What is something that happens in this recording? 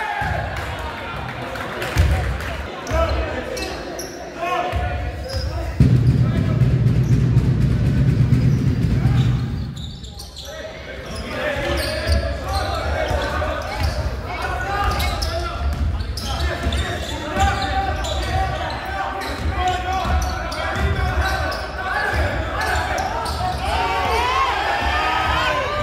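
Spectators chatter and call out in the stands.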